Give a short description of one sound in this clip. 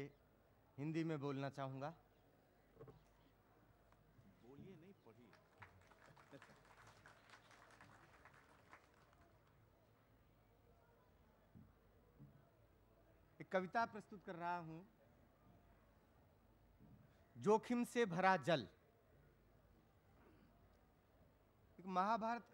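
An elderly man speaks slowly through a microphone, with long pauses.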